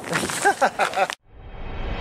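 Footsteps tread on pavement.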